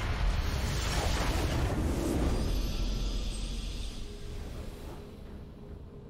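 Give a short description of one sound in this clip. A magical blast bursts with a loud crackling rush, then slowly fades.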